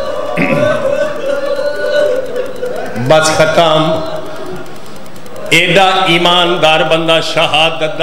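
A man speaks emotionally into a microphone, half singing his words in an echoing hall.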